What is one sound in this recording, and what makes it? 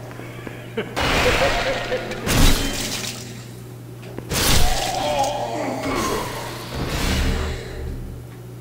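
A sword slashes and strikes with heavy impacts.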